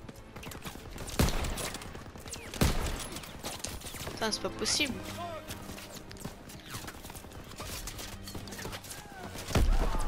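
Gunshots crack and boom in bursts.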